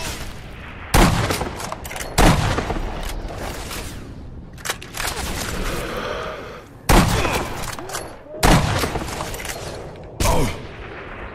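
Rifle shots crack loudly and echo.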